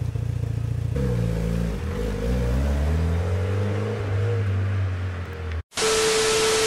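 A car engine revs and pulls away.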